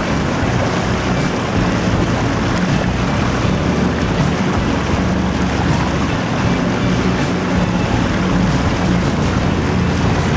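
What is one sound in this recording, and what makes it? Water rushes and splashes against a moving hull.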